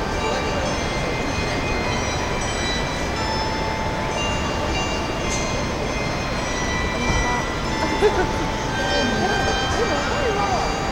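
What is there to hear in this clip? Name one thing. A steady low city hum fills the night air.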